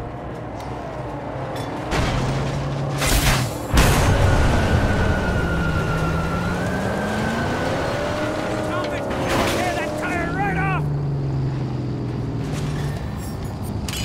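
A car engine roars as it drives.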